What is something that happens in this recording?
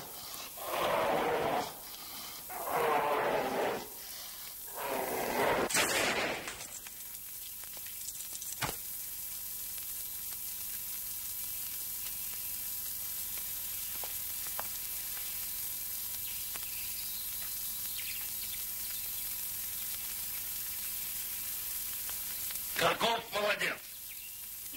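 A man's voice calls out loudly in bursts, heard through an old, hissy recording.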